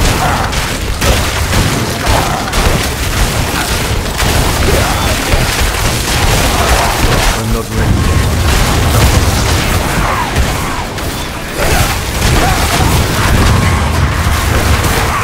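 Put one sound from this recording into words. Magic blasts and explosions crackle and boom in quick succession.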